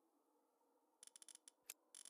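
Soft clicks tick quickly as menu items are selected.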